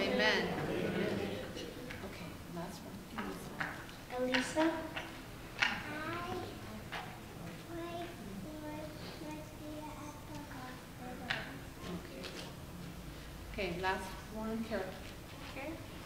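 A young girl speaks through a microphone in a room with a slight echo.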